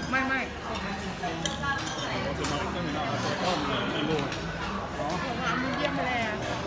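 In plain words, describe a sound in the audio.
A crowd of adults chatters around.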